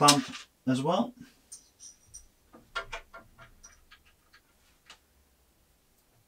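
A hex key scrapes and clicks against metal screws.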